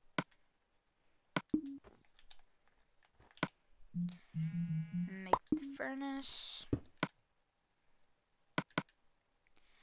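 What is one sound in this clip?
Short menu clicks sound in a video game.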